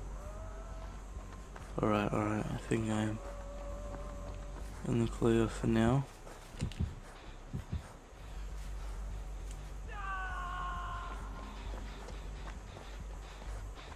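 Footsteps run quickly over grass and dry leaves.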